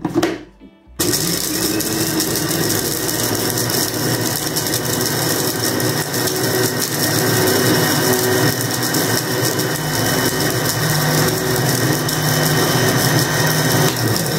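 An electric blender whirs loudly and steadily.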